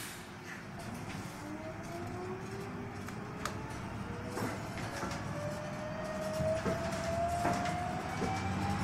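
A bus engine whine rises in pitch as the bus speeds up.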